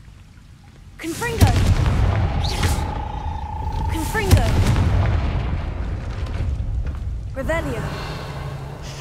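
A magic fire spell bursts out with a whoosh.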